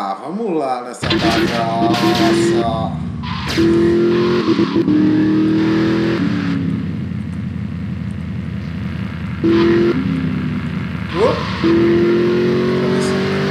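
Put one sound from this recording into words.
A sports car engine roars and revs steadily, rising and falling in pitch.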